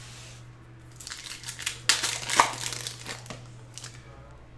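Trading cards rustle and slide as a hand sorts through them.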